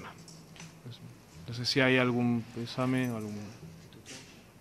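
A man speaks calmly into a microphone.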